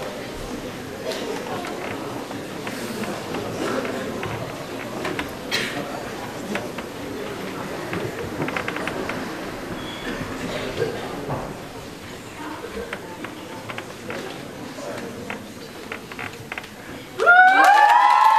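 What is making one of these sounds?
An audience murmurs and chatters in a large hall.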